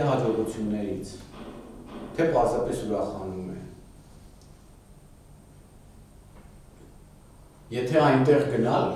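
An older man speaks calmly, lecturing with pauses.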